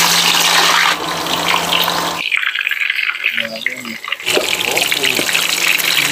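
Meat sizzles as it fries in hot oil.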